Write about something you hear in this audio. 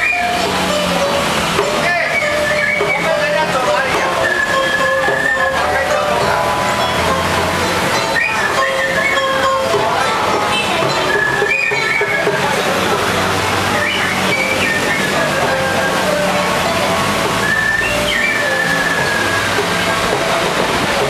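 A man plays a harmonica.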